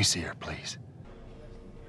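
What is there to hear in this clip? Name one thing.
A man speaks in a low, pleading voice.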